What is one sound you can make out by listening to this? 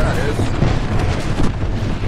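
A fire crackles and roars nearby.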